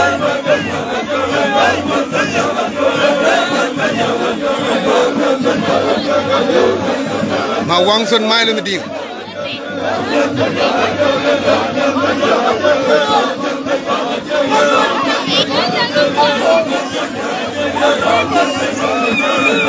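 A large crowd of men and women sings and chants loudly outdoors.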